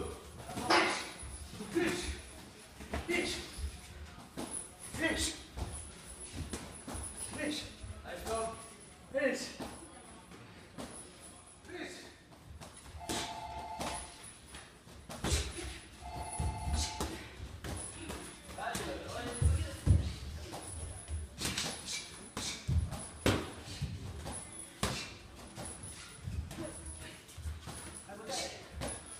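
Shoes shuffle and squeak on a ring canvas.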